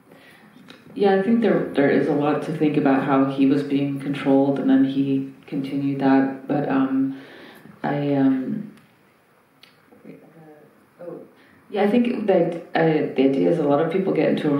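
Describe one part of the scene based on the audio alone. A woman speaks calmly and thoughtfully into a microphone, heard through loudspeakers.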